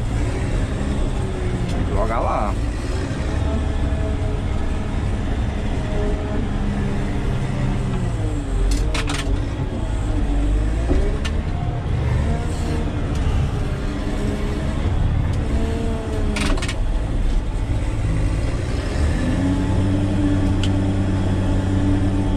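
A blade scrapes dirt and gravel.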